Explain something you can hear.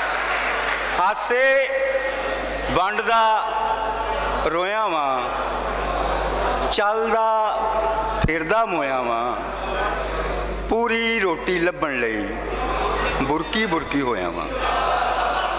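An elderly man chants verses in a sing-song voice through a loudspeaker.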